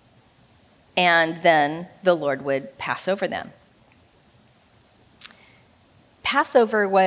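A young woman speaks with feeling into a microphone, with pauses between phrases.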